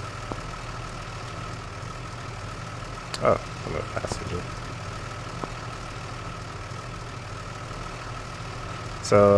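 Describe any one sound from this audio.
A fire truck engine idles with a low, steady rumble.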